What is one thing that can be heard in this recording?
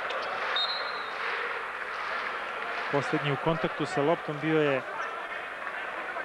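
A large crowd murmurs in an echoing arena.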